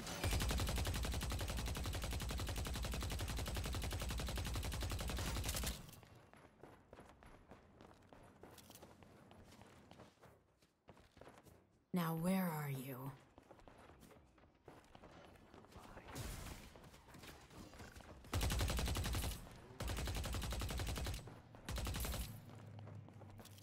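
Gunfire rattles rapidly from a game.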